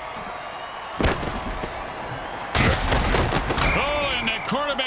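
Armoured players crash together in a heavy tackle.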